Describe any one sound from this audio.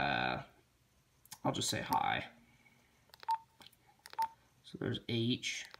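Buttons on a handheld radio click under a thumb.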